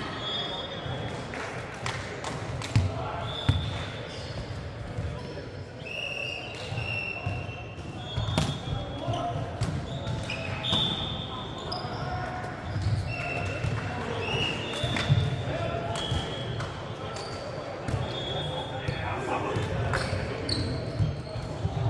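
A volleyball thuds as players hit it, echoing in a large hall.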